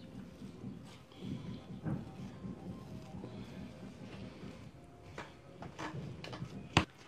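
Hands rub and smear soft paste.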